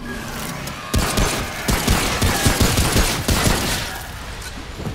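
Gunshots fire in quick bursts, loud and sharp.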